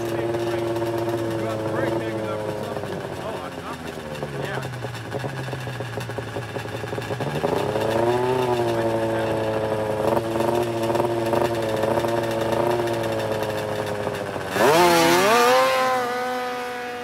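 A snowmobile engine idles and revs nearby, then roars away at full throttle.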